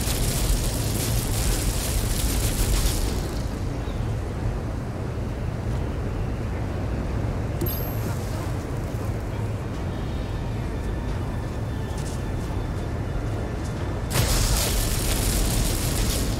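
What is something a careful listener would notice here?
Lightning crackles and hisses in sharp bursts.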